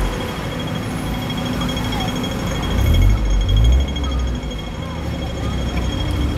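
A crossing signal beeps rapidly.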